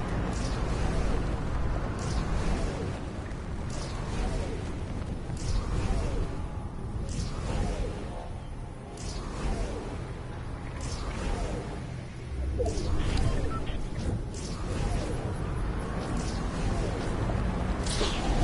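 Wind rushes loudly and steadily past a falling figure.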